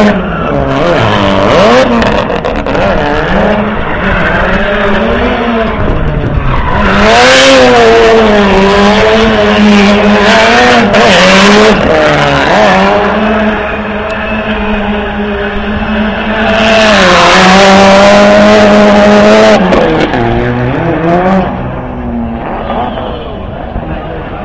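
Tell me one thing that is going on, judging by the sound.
Tyres screech as a car spins and drifts.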